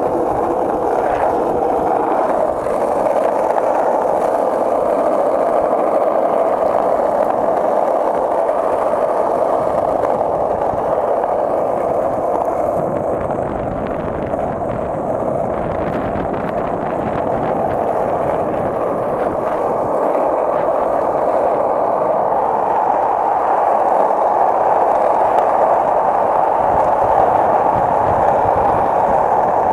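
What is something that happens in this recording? Skateboard wheels roll and rumble steadily over rough pavement.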